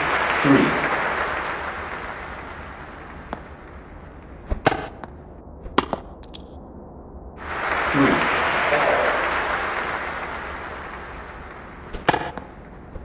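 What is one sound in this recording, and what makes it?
A crowd cheers and applauds in a large arena, then fades.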